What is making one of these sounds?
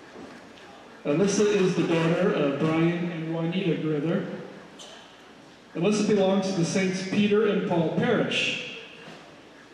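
A man announces through a microphone and loudspeakers in a large echoing hall.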